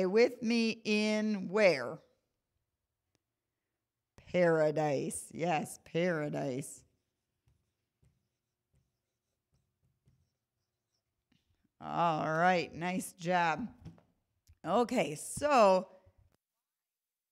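A woman speaks clearly and with animation into a microphone, pausing between phrases.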